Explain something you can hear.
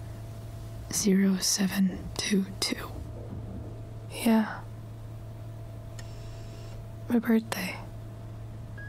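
A young woman answers weakly and quietly.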